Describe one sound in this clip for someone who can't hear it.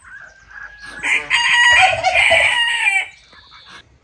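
A goose honks loudly.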